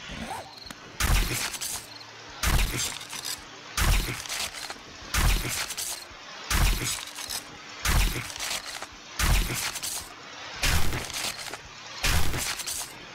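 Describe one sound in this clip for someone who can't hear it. A tool chops into wood with heavy, regular thuds.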